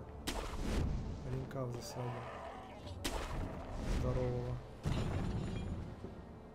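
A grappling rope whips and whooshes through the air several times.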